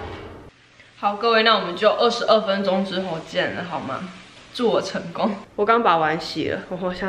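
A young woman talks casually and close by.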